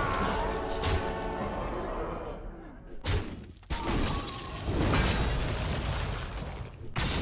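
Electronic game sound effects of magical blasts and impacts play.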